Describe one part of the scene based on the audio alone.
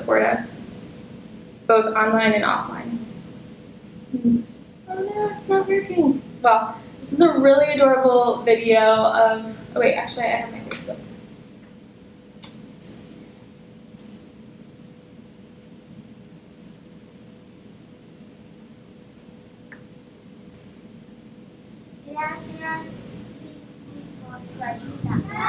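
A woman speaks into a microphone in a large hall, heard through loudspeakers.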